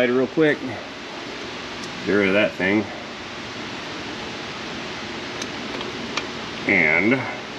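A wrench clicks against a metal bolt.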